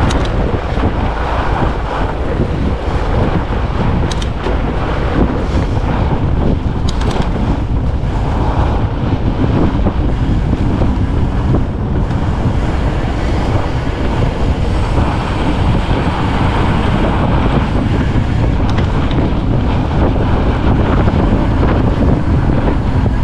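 Wind rushes steadily past, roaring low and loud.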